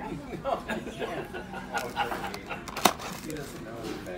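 A cardboard box lid rustles and scrapes as a hand opens it.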